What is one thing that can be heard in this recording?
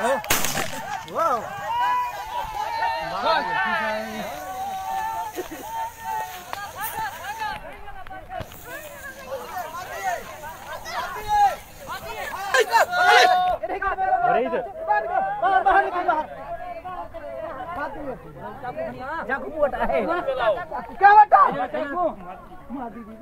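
Several men shout excitedly outdoors.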